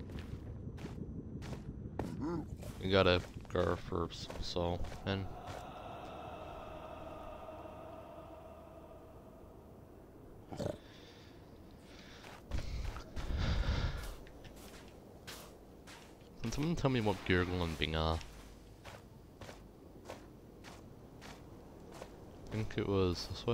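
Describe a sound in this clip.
Footsteps crunch steadily on soft ground.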